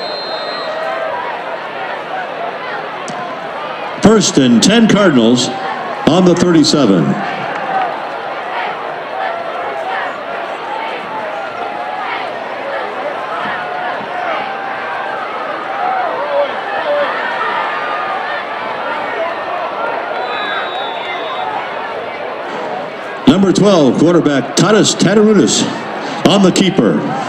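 A crowd of spectators chatters steadily outdoors.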